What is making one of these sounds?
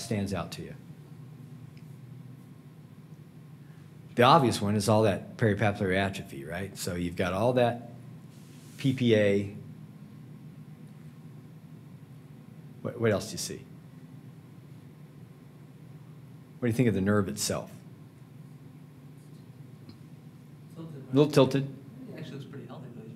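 A man lectures calmly through a microphone, with pauses between phrases.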